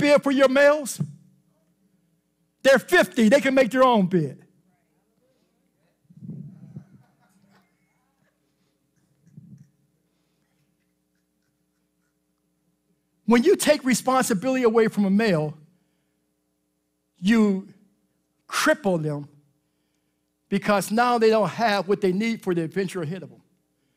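A man preaches with animation through a microphone, with pauses between phrases.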